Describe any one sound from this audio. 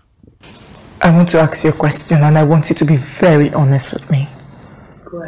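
A young woman speaks calmly and earnestly nearby.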